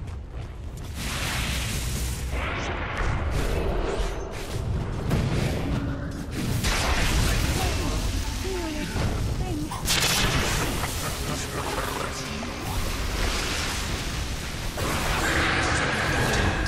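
Magic blasts, whooshes and clashing blows of a fantasy battle game ring out.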